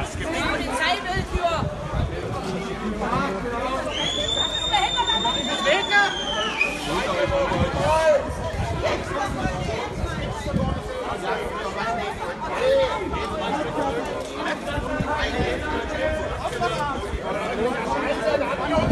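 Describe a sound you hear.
A crowd of men shout and talk over one another outdoors.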